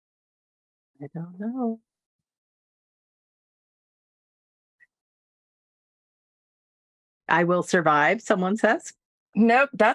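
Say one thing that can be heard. A middle-aged woman talks cheerfully over an online call.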